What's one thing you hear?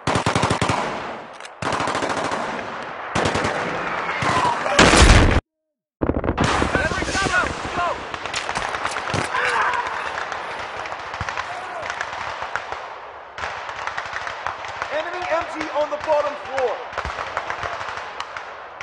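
Rapid gunfire cracks and rattles close by.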